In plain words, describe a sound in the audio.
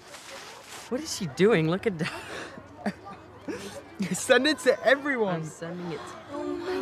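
Two boys laugh and chatter close by.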